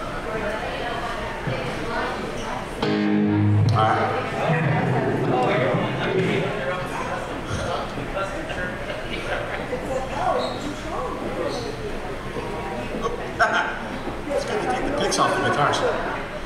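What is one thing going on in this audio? Electric guitars play loudly.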